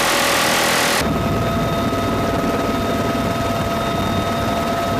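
A helicopter's engine and rotors roar loudly close by.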